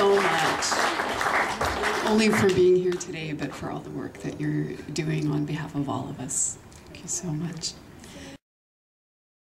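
A middle-aged woman speaks warmly into a microphone over loudspeakers.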